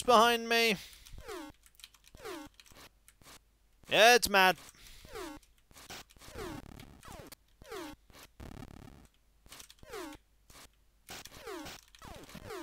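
Short electronic bleeps from a retro video game sweep downward in pitch, again and again.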